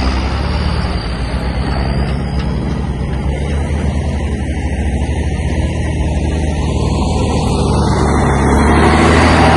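A truck's diesel engine rumbles steadily in the distance.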